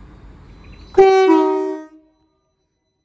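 A train sounds its horn briefly.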